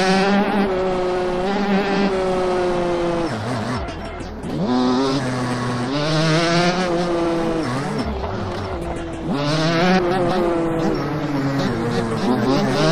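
A motorbike engine whines loudly, revving up and down as gears shift.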